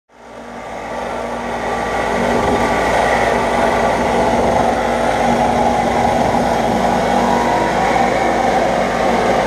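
An air tool whirs loudly, echoing in a large hard room.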